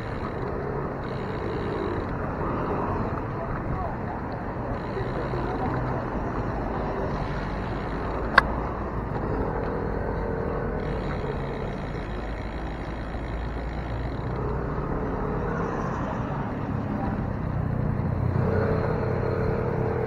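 Cars drive past with a steady rumble of traffic.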